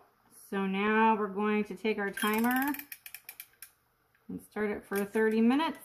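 A kitchen timer clicks as it is wound.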